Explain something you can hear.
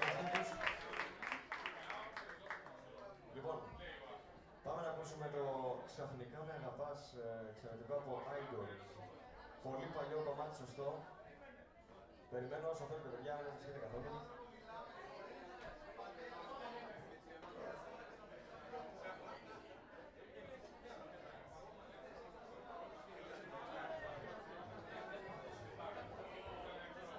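Men and women in an audience chatter close by.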